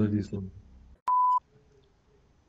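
A test tone beeps briefly.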